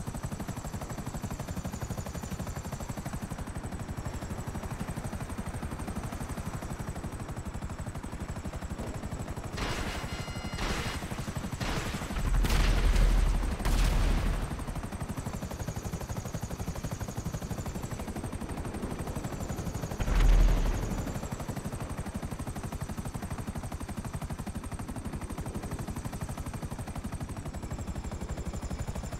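A helicopter's rotor thumps in flight.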